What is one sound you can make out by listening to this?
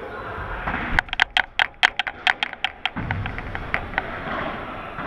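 A ball bounces on a hard floor in a quick run of taps.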